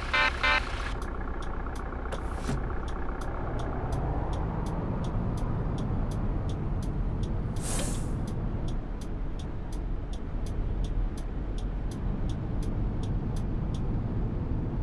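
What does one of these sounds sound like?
A turn signal ticks rapidly and evenly.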